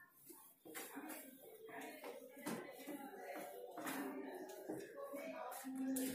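A hand rubs across a whiteboard.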